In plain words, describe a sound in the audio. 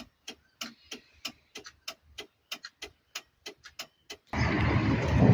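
A turn signal ticks steadily and close by.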